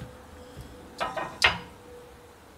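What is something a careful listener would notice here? A wooden board knocks against a frame.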